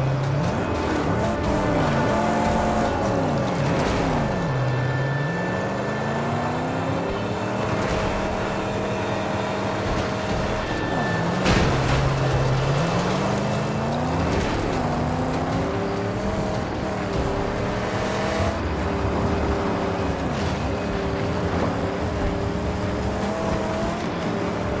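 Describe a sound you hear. A car engine roars and revs up and down as it races along.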